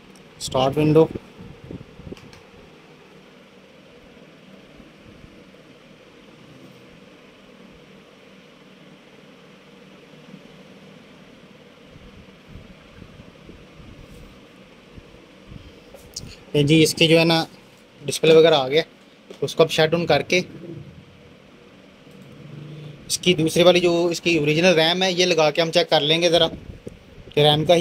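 A computer fan hums steadily nearby.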